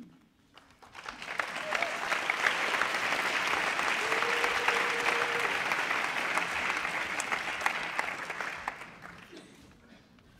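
A crowd applauds loudly in a large room.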